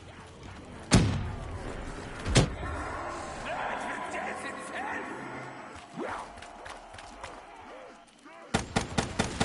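Gunshots ring out loudly in sharp bursts.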